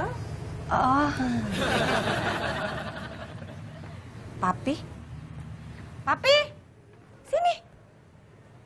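A young woman speaks nearby in short, lively bursts.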